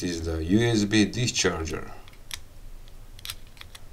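A plastic plug clicks into a socket.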